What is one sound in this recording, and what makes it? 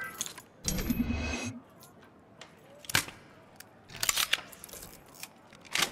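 A metal lock clicks and rattles as it is picked.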